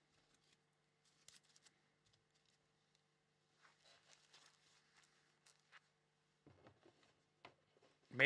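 Small plastic parts click and rattle in a young man's hands.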